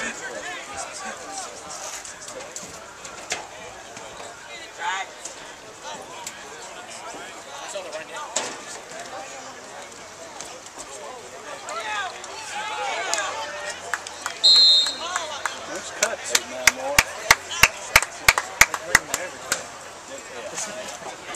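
A crowd of young men and boys chatters and calls out outdoors.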